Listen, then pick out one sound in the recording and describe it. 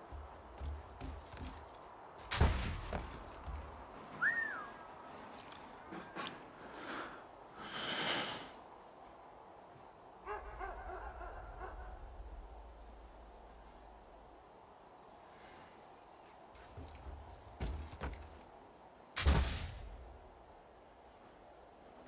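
Footsteps patter softly across a roof.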